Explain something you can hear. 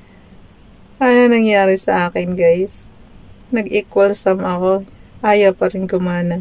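A middle-aged woman speaks calmly and close to a microphone, with pauses.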